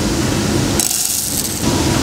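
Beans rattle as they pour into a plastic container.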